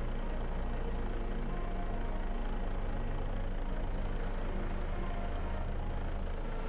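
A hydraulic crane arm whines as it moves.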